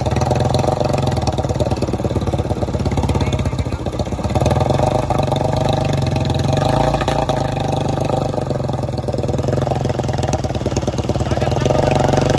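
A single-cylinder Royal Enfield Bullet motorcycle thumps at low speed.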